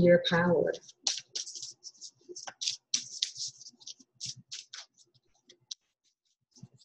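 A small tin clicks and rustles as a woman's hands handle it.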